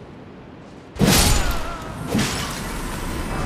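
A blade slashes and strikes with a heavy thud.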